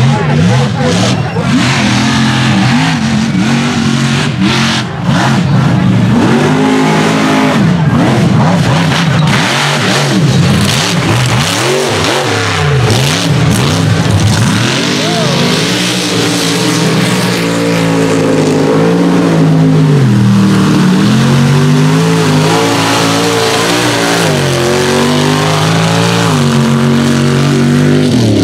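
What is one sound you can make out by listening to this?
A loud engine roars and revs hard, rising and falling in pitch.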